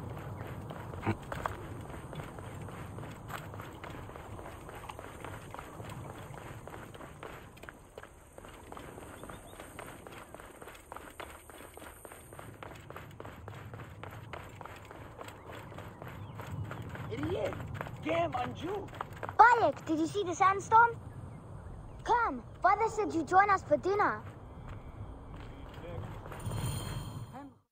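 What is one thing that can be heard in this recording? Quick footsteps run across stone paving.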